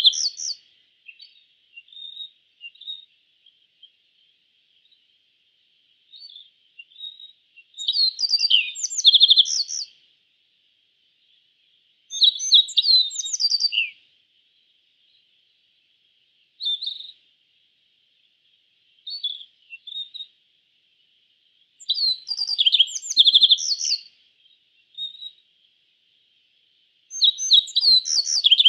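A small songbird sings bright, twittering phrases in bursts with short pauses.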